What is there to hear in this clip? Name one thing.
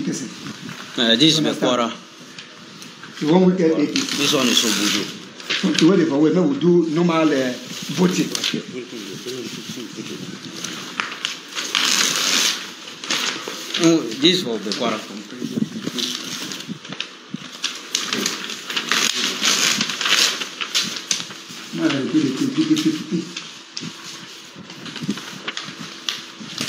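Paper rustles and crackles as sheets are handled close by.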